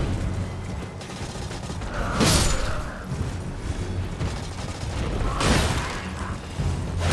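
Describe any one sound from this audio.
Hooves gallop over the ground.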